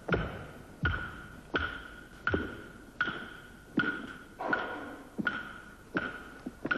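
A heavy object strikes something hard in steady, repeated blows, each ringing briefly.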